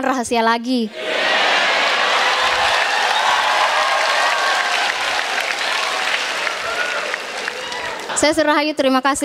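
A large audience laughs and cheers loudly in a big hall.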